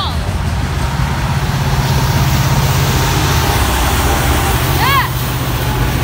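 A locomotive engine drones loudly as it passes.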